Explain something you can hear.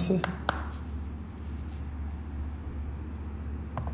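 A hard stone is set down with a light knock on a plastic plate.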